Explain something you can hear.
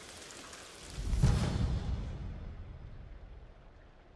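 A deep rumbling boom swells and slowly fades.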